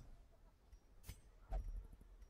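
A soft click sounds as a game menu opens.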